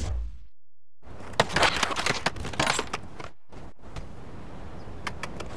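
Skateboard wheels roll and rattle over concrete slabs.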